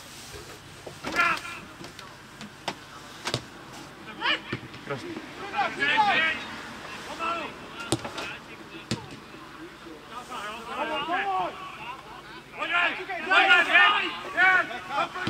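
Men shout across an open field in the distance.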